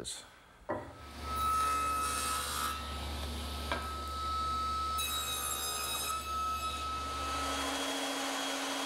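A power saw hums steadily as it cuts wood.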